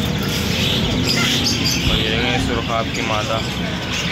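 Small birds chirp and call close by.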